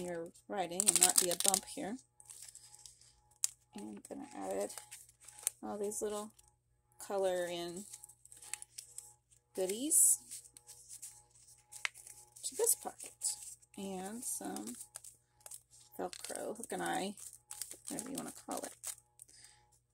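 Paper crinkles softly as it is peeled and pressed down.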